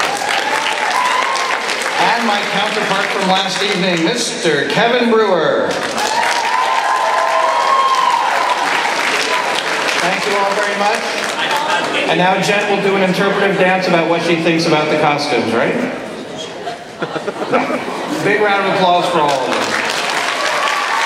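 A man speaks with animation through a loudspeaker in a large hall.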